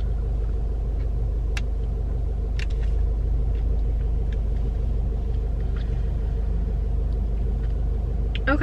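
A young woman smacks her lips softly while eating.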